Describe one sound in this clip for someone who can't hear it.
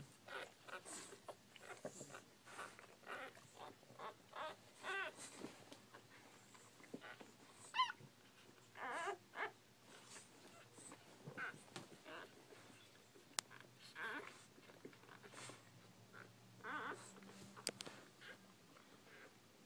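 Newborn puppies squeak and whimper close by.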